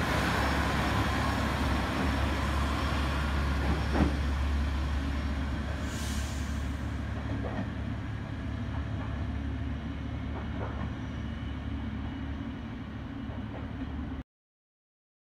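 A train rumbles away down the line and slowly fades.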